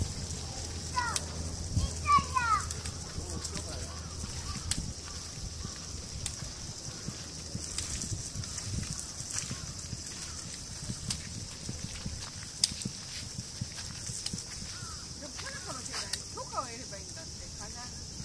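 A small child calls out in a high voice nearby.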